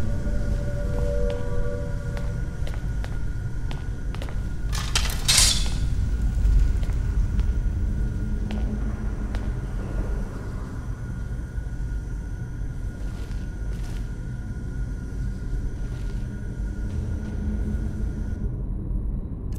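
Footsteps thud on stone in an echoing tunnel.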